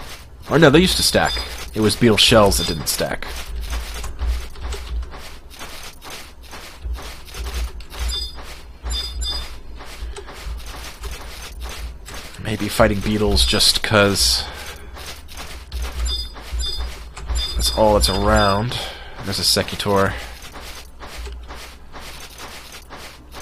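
Quick footsteps patter steadily on sand.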